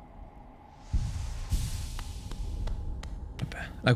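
A soft whooshing burst rings out.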